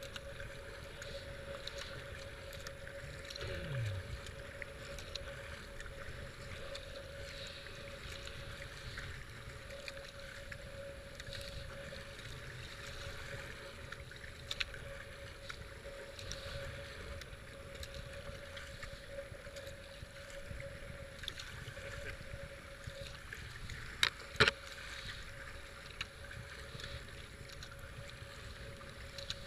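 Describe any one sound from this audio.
Fast river water rushes and churns around a small boat.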